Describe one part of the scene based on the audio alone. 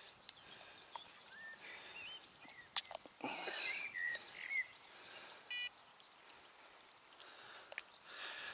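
A small fish wriggles and slaps in a hand.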